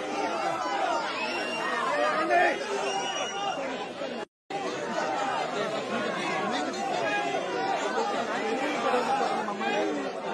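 A crowd of men and women talk and shout all at once, close by.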